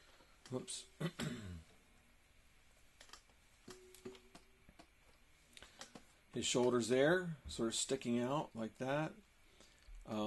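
A man speaks calmly and close, as if into a microphone.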